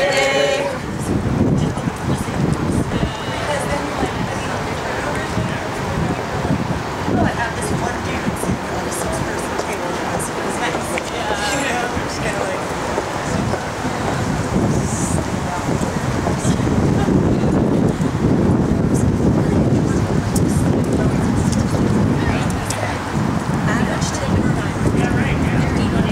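Wind rumbles across an open outdoor space.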